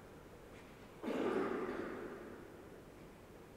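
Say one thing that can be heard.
An object thuds down on a wooden altar and rings out in a large echoing hall.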